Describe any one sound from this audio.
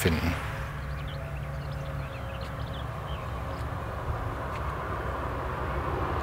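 A car approaches along a road, its engine and tyres growing gradually louder.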